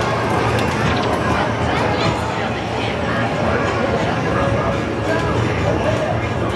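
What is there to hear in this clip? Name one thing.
An arcade game plays loud electronic jingles and beeps.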